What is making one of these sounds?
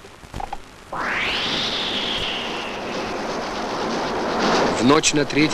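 A lit fuse hisses and sputters.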